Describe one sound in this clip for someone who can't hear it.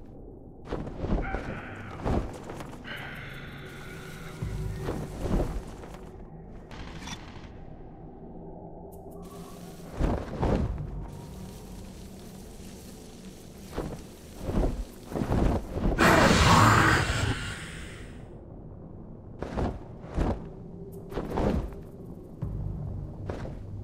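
Large wings beat with heavy, repeated whooshes.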